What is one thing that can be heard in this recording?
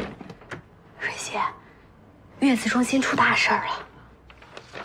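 A young woman speaks urgently, close by.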